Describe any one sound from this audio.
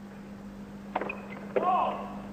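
A tennis racket strikes a ball with a sharp pop on a serve.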